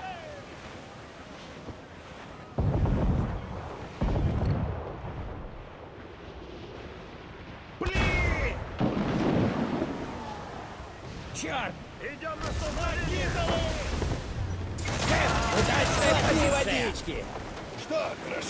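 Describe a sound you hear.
Ocean waves crash and roll against a ship's hull.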